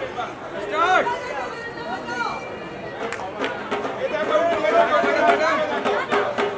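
A large crowd of women and men cheers and chatters loudly close by.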